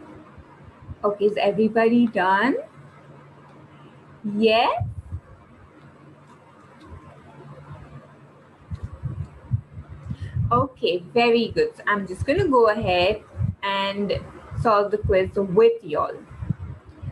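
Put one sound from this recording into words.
A young woman speaks with animation into a microphone, heard through an online call.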